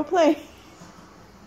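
A small dog yelps sharply.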